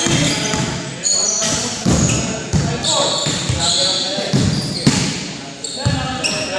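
Sneakers squeak sharply on a hardwood court in a large echoing gym.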